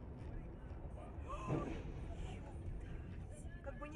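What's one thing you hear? A truck crashes and tumbles with a heavy thud.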